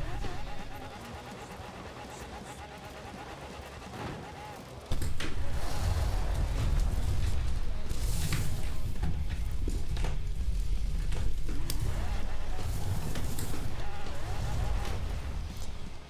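Tyres skid over snow and gravel.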